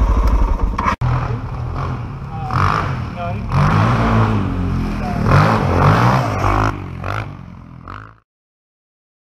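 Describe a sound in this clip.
A dirt bike revs and rides past.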